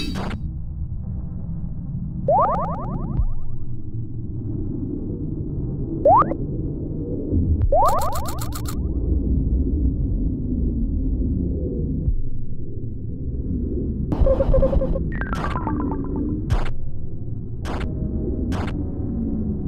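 Low, moody game music plays throughout.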